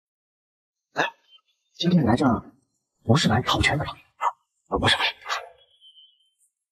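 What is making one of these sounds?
A man asks questions in a friendly voice.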